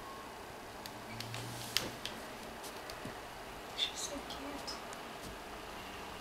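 A cat rustles softly against cloth while rolling and stretching.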